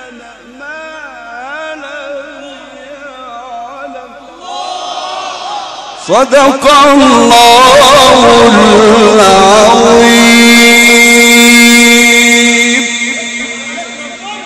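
A man chants a melodic recitation into a microphone, loud and echoing.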